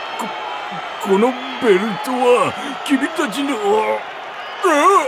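A man speaks in a strained, breathless voice.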